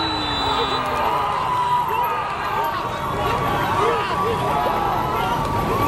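Young men shout as they celebrate a goal.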